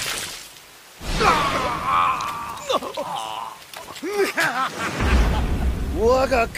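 A man speaks tensely and menacingly.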